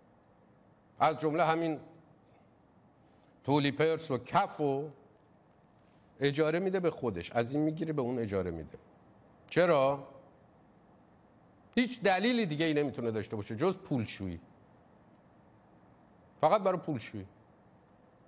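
A man speaks calmly and clearly into a microphone, in short phrases with pauses between them.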